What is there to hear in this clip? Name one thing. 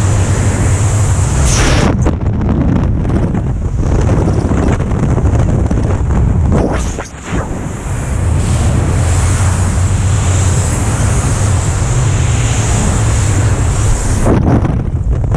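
Strong wind roars loudly during a fast fall through the air.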